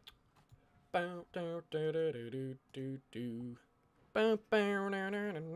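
A young man talks with animation into a microphone close by.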